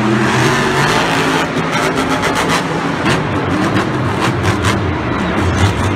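A monster truck lands hard with a heavy crunching thud.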